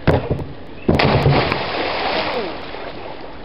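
A boy jumps into a pool with a loud splash.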